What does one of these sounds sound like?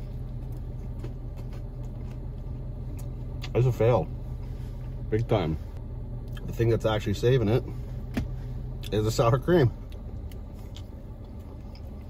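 A man chews food with his mouth closed.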